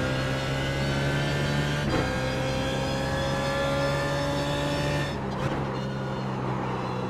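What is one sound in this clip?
A racing car engine roars loudly and steadily, its pitch dropping briefly as it shifts gears.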